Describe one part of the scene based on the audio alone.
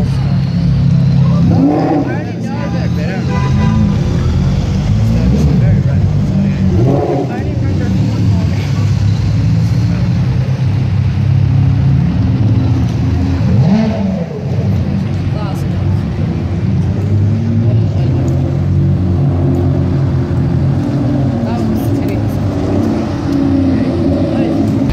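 Powerful sports car engines rumble and rev loudly as cars pass close by one after another.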